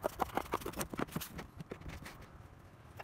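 Hands shuffle and rustle sheets of cardboard.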